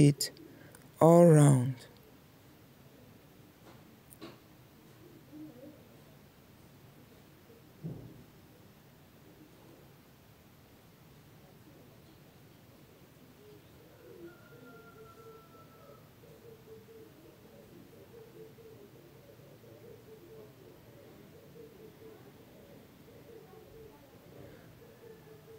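A sewing machine hums and stitches steadily.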